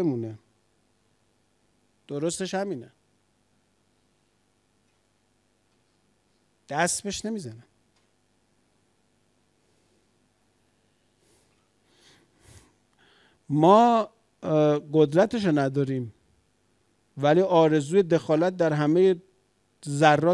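A middle-aged man speaks slowly and thoughtfully into a microphone, with long pauses.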